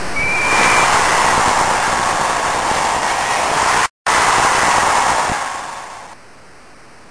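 A large crowd cheers and roars loudly, then fades away.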